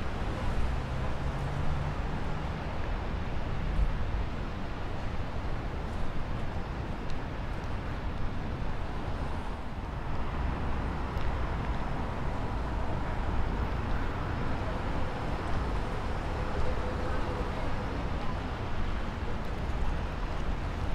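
Footsteps of passers-by thud on a boardwalk nearby.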